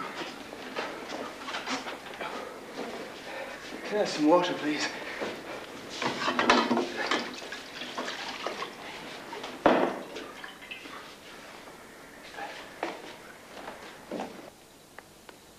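An elderly man talks with strain and animation nearby.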